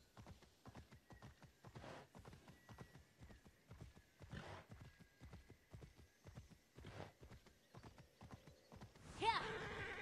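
Hooves clatter in a quick, steady gallop.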